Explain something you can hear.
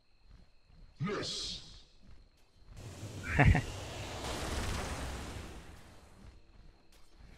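Game spell effects whoosh and crackle during a fight.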